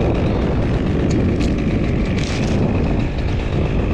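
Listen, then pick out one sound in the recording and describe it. A chainsaw engine runs with a steady low rumble.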